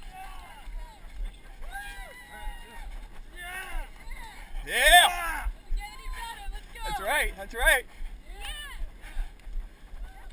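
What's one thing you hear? A crowd of men and women shouts and cheers nearby outdoors.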